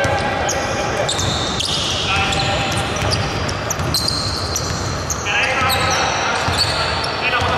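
Sneakers squeak sharply on a wooden court in a large echoing hall.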